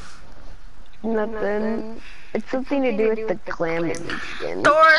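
A young man talks with animation into a microphone close by.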